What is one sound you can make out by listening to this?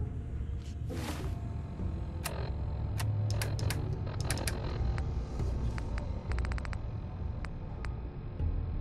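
A handheld device clicks as it scrolls through a menu.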